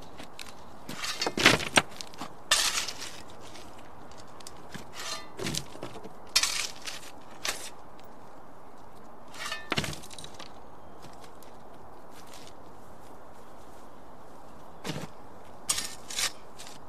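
Soil thuds and scatters onto a wooden coffin lid.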